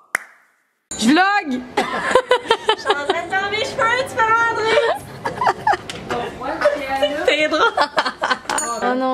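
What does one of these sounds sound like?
A young woman shouts and laughs loudly close by.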